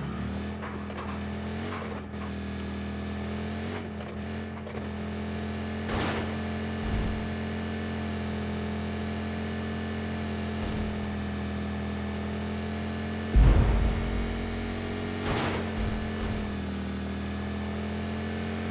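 A vehicle engine hums steadily as it drives over rough ground.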